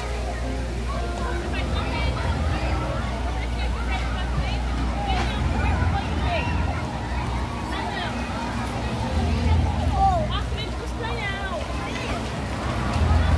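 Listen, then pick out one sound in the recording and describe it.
A crowd of children and adults chatter and shout nearby, outdoors.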